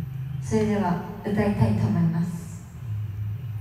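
A young woman sings close into a microphone.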